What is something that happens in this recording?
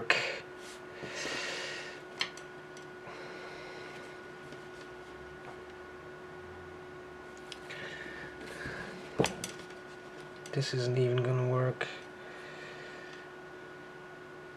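Fabric rustles softly as it is lifted and laid down.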